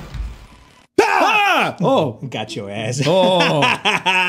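Young men scream and laugh loudly into microphones.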